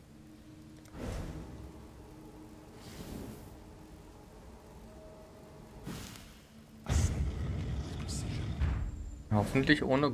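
Fiery spell blasts crackle and boom in a game.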